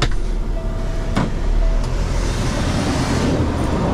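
A truck's cab door clicks open.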